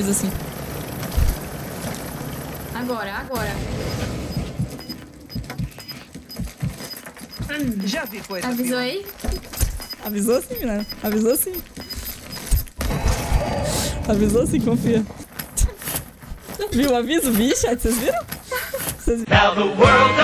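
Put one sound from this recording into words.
A young woman talks and laughs into a close microphone.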